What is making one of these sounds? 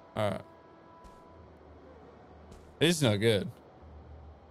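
A young man speaks briefly and animatedly into a close microphone.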